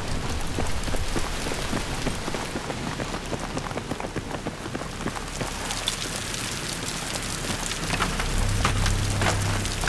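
Boots crunch over rubble as soldiers run.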